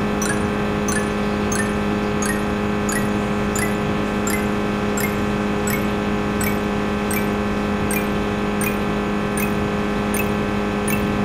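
Short musical notes chime at an even pace, climbing higher in pitch.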